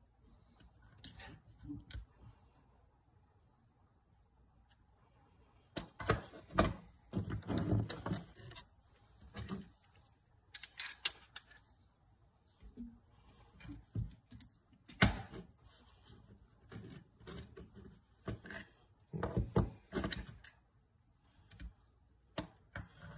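Metal and plastic parts click and knock as they are handled.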